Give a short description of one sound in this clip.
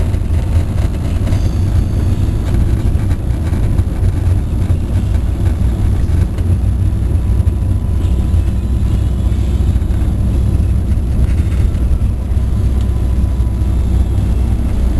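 A car's engine rumbles steadily as it drives along a road.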